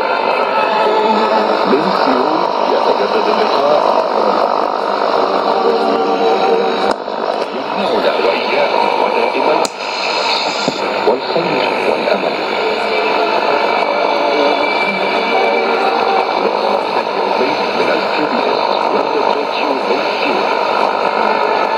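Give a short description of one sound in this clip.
A shortwave radio plays a faint, noisy broadcast through its loudspeaker, with hiss and crackle.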